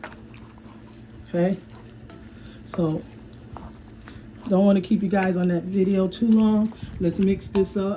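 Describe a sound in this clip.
A wooden spoon scrapes and stirs food in a frying pan.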